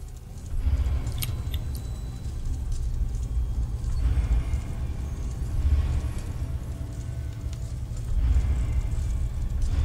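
A small tram car rattles along a track.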